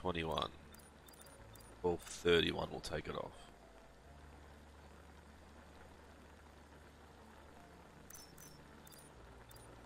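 Water simmers softly in a pot on a stove.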